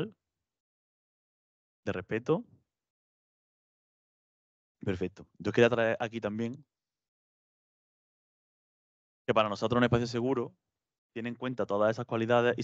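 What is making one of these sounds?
A man speaks calmly through a microphone, in short bursts with pauses.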